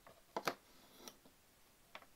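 A hand knocks and shifts small objects on a hard surface.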